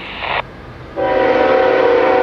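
A train's horn blows loudly nearby.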